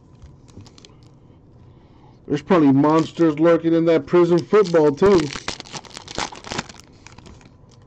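A foil card pack wrapper crinkles and tears open.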